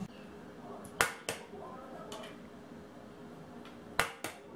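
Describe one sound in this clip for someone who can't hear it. An egg taps against a hard edge.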